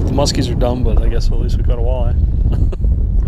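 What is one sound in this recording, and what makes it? A man talks with animation outdoors.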